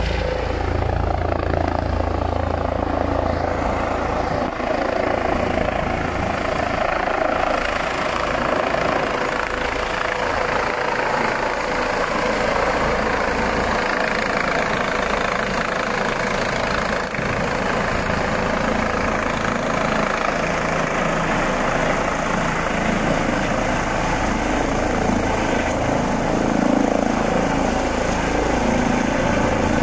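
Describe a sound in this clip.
A helicopter's rotor thuds and roars loudly overhead, growing closer.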